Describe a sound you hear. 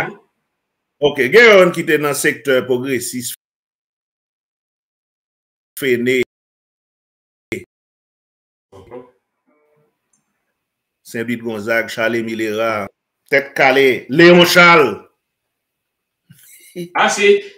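A man speaks with animation over an online call, in bursts with pauses.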